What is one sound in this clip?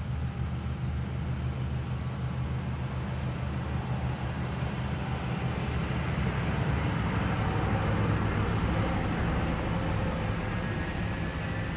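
A vehicle engine approaches, growing louder, and passes close by.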